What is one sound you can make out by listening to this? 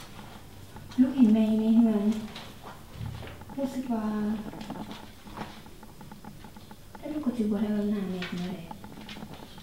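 A woman speaks in short phrases close by.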